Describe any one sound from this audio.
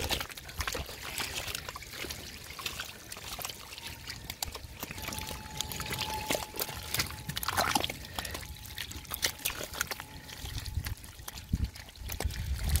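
Gloved hands dig and squelch through wet mud.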